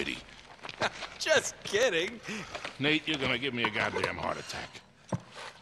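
A middle-aged man complains loudly with animation.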